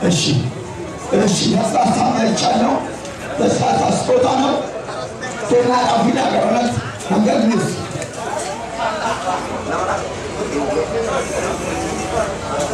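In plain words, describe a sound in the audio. A man speaks through a microphone over a loudspeaker.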